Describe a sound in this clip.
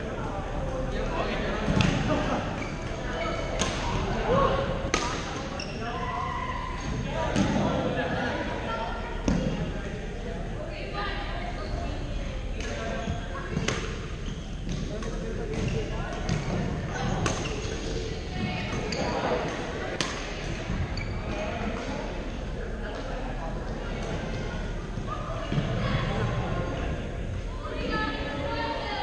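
Voices of men and women chatter in a large echoing hall.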